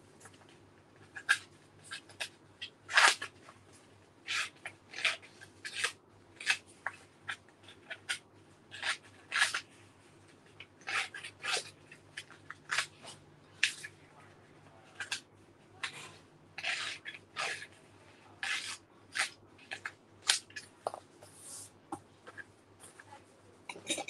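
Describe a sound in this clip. Paper rustles and tears in short bursts, close by.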